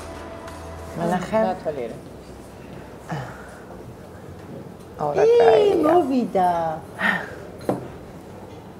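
Two women talk with animation close by.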